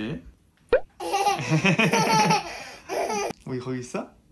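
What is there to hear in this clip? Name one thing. A toddler girl giggles close by.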